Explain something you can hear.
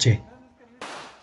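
A firecracker bangs loudly and sharply.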